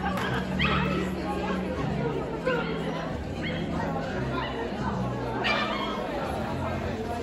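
A crowd of people chatters in a large, echoing hall.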